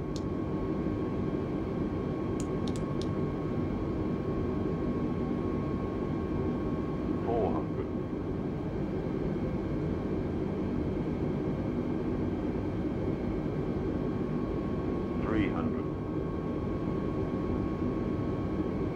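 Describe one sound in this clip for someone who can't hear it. Jet engines hum steadily inside a cockpit.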